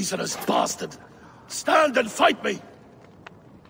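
A man shouts angrily and defiantly, close by.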